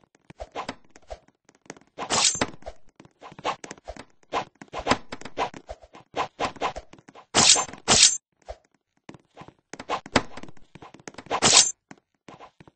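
A blade whooshes through the air in short swings.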